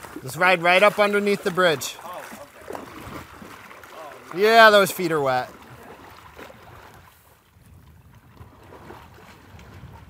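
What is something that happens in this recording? A horse wades and splashes through water.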